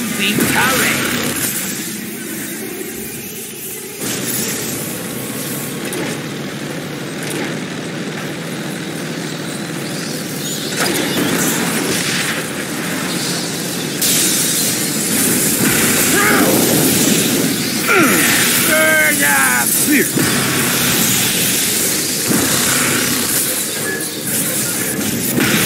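A heavy vehicle engine rumbles low.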